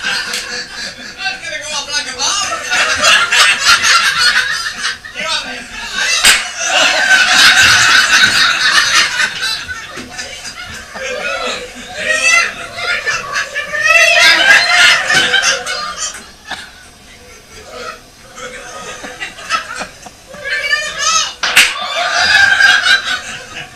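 A group of men and women laugh loudly together.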